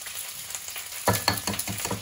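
An egg cracks against the rim of a bowl.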